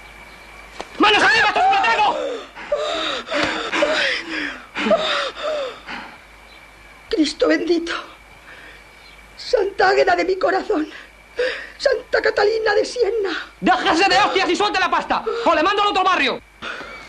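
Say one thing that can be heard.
A young man shouts threateningly.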